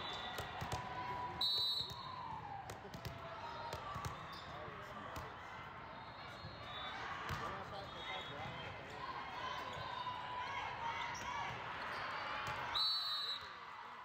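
A volleyball is struck with a hard smack.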